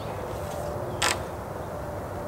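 A wooden post knocks once against the ground.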